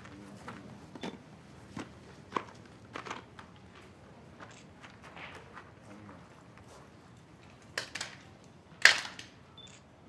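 A man claps his hands sharply a few times.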